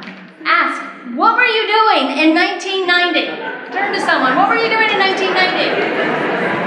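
A middle-aged woman speaks with animation into a microphone, heard through loudspeakers in a hall.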